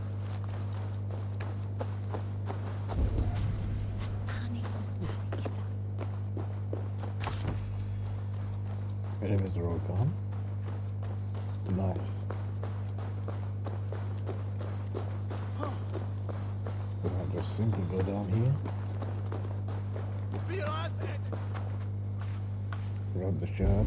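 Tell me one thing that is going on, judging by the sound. Footsteps crunch over earth and gravel.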